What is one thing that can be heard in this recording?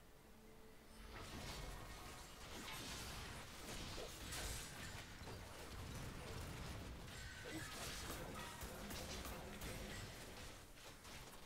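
Video game battle effects clash and whoosh softly.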